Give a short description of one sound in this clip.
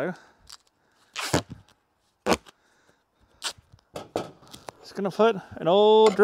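Duct tape rips off a roll.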